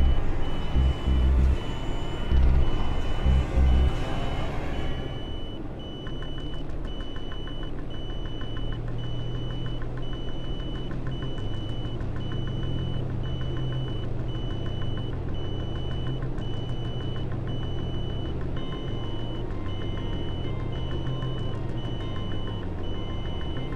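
A propeller engine drones steadily.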